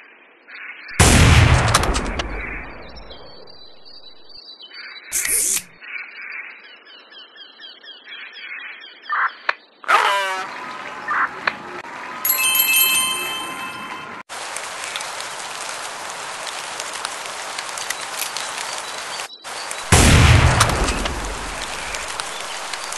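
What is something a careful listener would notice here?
A rifle shot booms and echoes.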